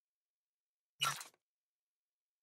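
A short whooshing chime sounds once.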